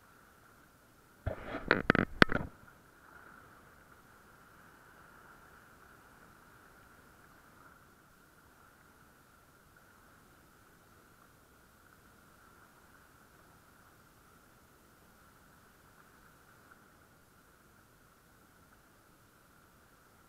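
Small waves lap and splash against rocks close by.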